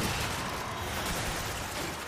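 Crystals shatter with a glassy crash.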